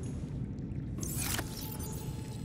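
A metal locker door swings open with a whooshing clatter.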